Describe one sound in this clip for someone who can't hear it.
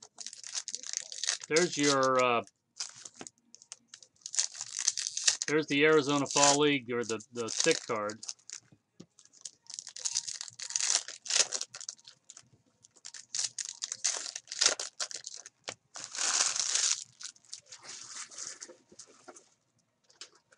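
Foil wrappers crinkle and tear as card packs are ripped open.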